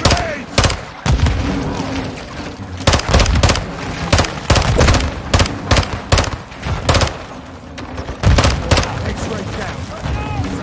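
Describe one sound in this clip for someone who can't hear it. Gunshots crack and echo in quick bursts.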